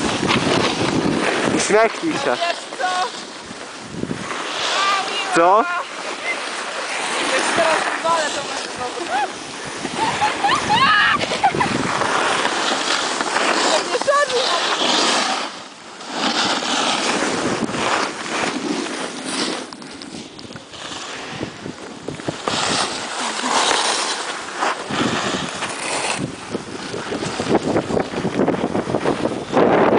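Skis and a snowboard hiss and scrape over snow.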